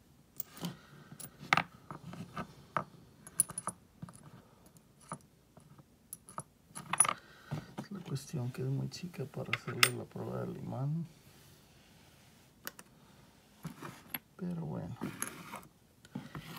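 Metal coins clink and click as fingers move them on a cloth surface.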